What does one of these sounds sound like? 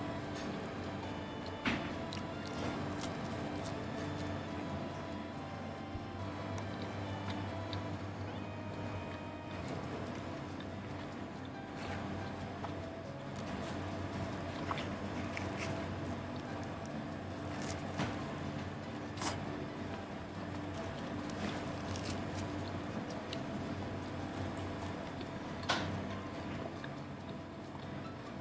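A man chews food with his mouth close by.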